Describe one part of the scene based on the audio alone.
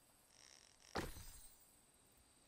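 A fishing line splashes into still water.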